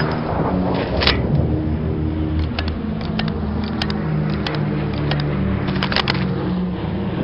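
A rifle's bolt and metal parts click and clack.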